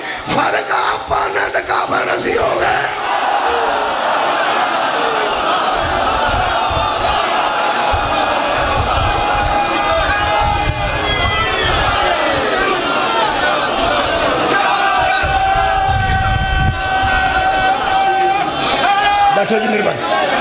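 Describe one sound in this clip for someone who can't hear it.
A middle-aged man speaks with strong emotion into a microphone over loudspeakers, in an echoing hall.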